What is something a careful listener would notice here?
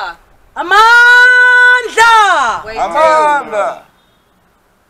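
A group of women and men shout out loudly together in a long chant outdoors.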